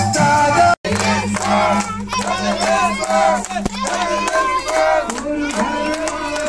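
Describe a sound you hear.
A group of men sing loudly together.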